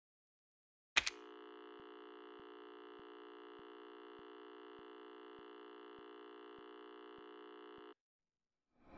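A steady electronic test tone hums.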